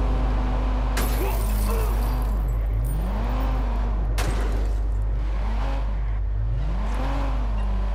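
A car crashes down a flight of stairs with heavy thuds.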